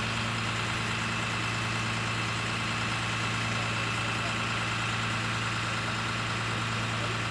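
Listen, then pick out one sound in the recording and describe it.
A large truck engine idles with a steady, low rumble.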